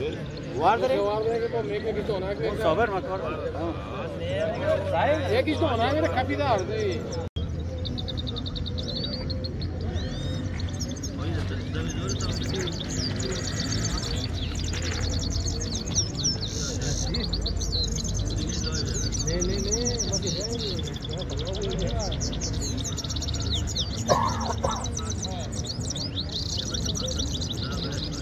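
Small caged songbirds sing with rapid, twittering trills and chirps.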